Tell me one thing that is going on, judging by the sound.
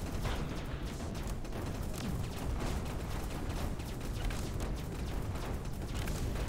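Rapid laser shots fire in a steady barrage.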